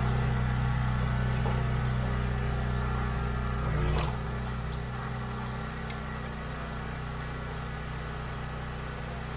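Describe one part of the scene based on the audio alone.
A petrol engine hums steadily throughout.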